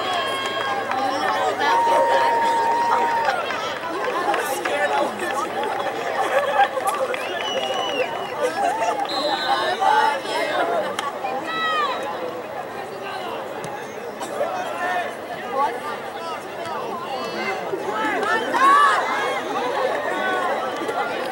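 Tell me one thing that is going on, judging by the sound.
A crowd of spectators cheers and shouts across an open field.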